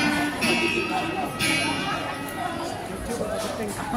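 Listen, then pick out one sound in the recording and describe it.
An acoustic guitar strums along.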